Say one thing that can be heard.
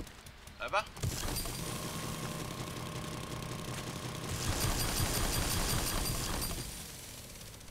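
A chainsaw engine roars and whines loudly.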